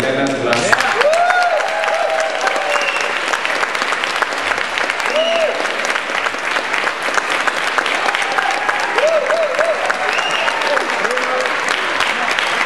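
Members of an audience whistle and cheer.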